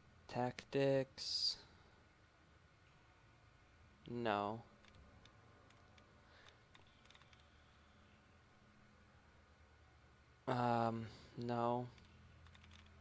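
A computer terminal beeps with short electronic tones.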